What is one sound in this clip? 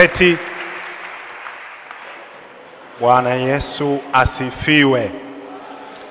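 A man preaches with feeling through a microphone in an echoing hall.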